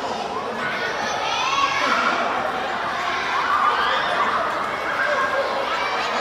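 Young girls shout and chatter in a large echoing hall.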